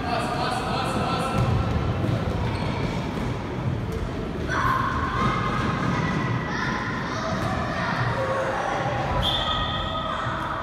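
A ball thuds as children kick it across a hard floor.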